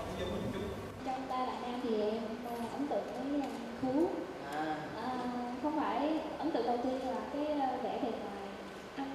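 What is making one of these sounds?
A young woman speaks into a microphone with animation.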